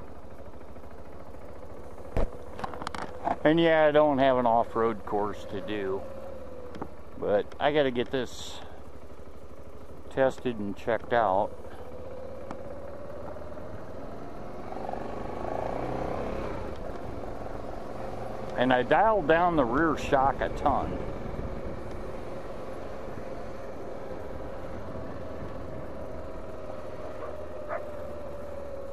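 A motorcycle engine hums steadily and revs up as the motorcycle rides.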